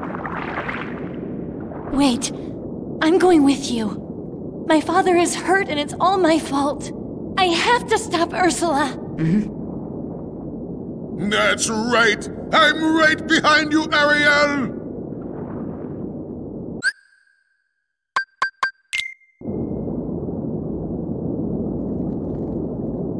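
A low underwater hum drones steadily.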